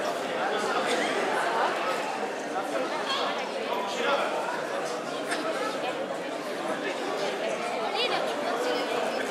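A crowd of men and women chatters in an echoing hall.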